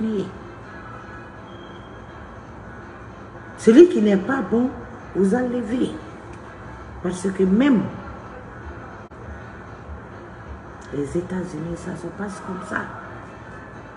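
A middle-aged woman speaks with animation close to a microphone, in short bursts with pauses.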